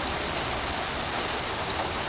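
Water drips from a roof edge.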